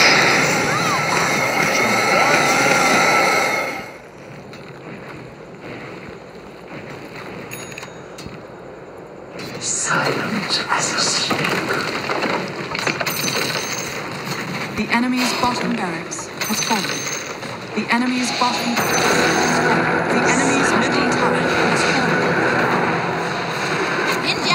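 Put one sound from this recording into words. Game sound effects of spells and attacks crackle and whoosh.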